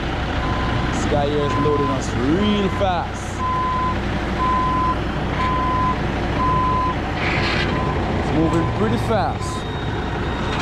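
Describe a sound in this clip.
A reversing alarm beeps at an even pace.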